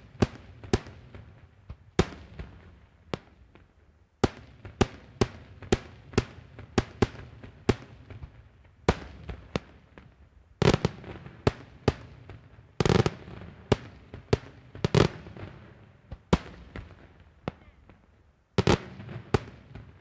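Booms from the bursts echo and rumble away in the open air.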